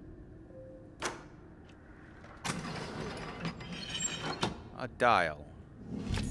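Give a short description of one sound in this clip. A heavy metal dial grinds and clicks as it turns.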